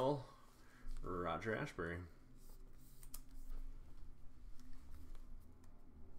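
A plastic card holder clicks and rustles between fingers.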